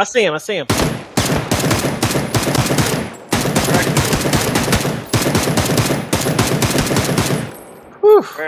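An automatic rifle fires in rapid, rattling bursts.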